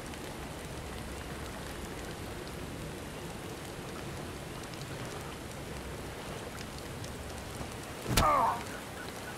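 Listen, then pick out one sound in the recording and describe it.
A fire crackles and roars steadily.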